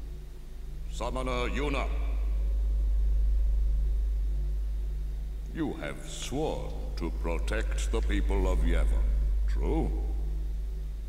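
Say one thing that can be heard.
An elderly man speaks slowly and solemnly in an echoing hall.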